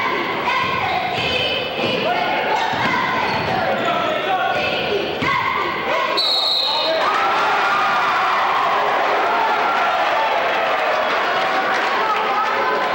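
A crowd murmurs and calls out in the stands.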